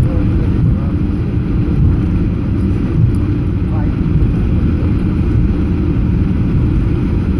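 Aircraft wheels rumble over the runway.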